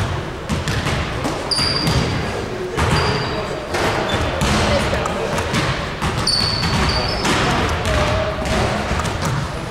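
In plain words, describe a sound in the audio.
Young men call out and talk nearby in an echoing hall.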